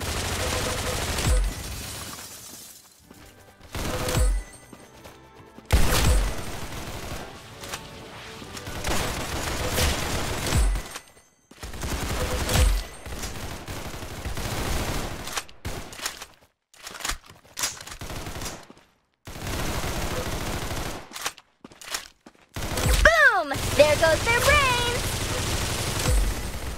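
Gunfire from a video game rifle rattles in short bursts.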